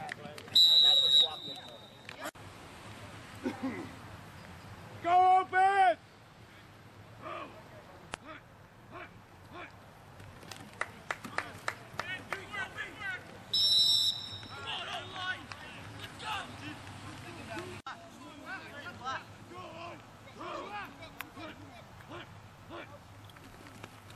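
Young men shout and call out across an open field outdoors.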